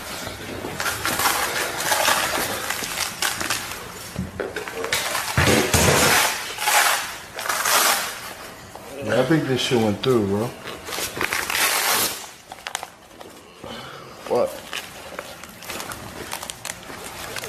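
Clothes rustle and thump as two people scuffle.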